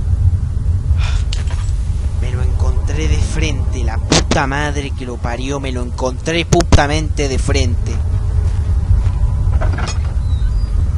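A man talks excitedly into a nearby microphone.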